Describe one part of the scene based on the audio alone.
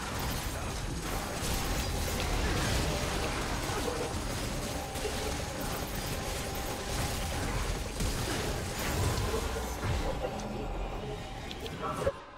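Game battle sound effects crackle and clash rapidly.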